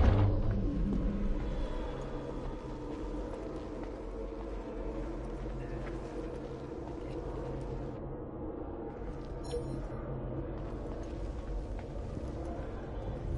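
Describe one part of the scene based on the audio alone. Soft footsteps creep across a hard floor.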